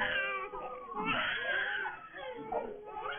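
A baby cries loudly.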